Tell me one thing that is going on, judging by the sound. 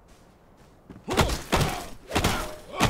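A club thuds against a creature in quick blows.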